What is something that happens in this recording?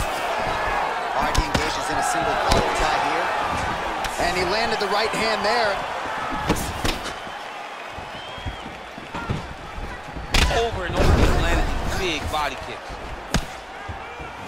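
A crowd cheers and roars in the background.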